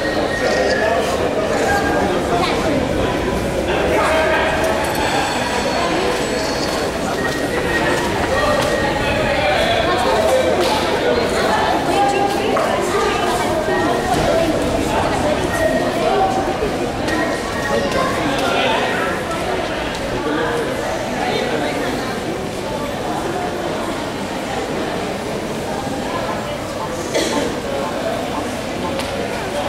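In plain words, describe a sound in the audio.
Many voices chatter and murmur in a large echoing hall.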